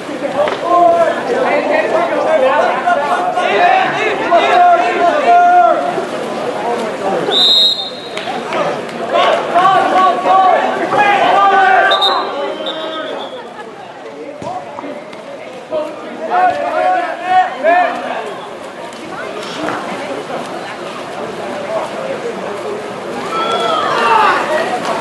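Water splashes as swimmers thrash in a pool.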